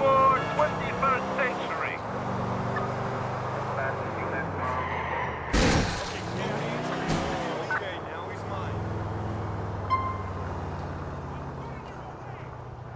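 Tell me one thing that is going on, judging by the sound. A car engine hums and revs as a car drives along a street.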